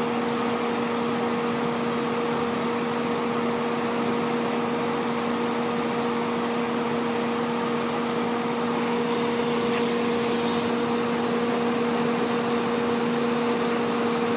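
A car engine idles steadily with a low hum and rattle.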